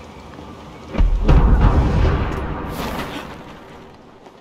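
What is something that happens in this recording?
A parachute opens with a loud rushing flap.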